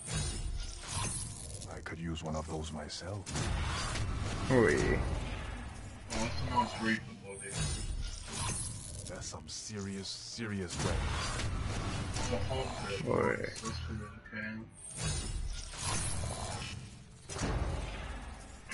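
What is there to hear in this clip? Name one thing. Game sound effects whoosh and chime as cards are revealed.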